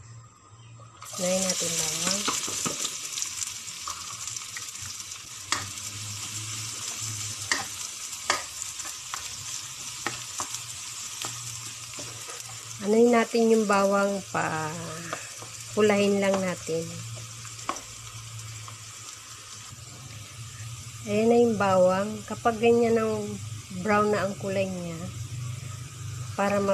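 Minced garlic sizzles in hot oil in a nonstick pan.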